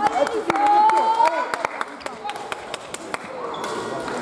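Badminton rackets strike a shuttlecock in a quick rally.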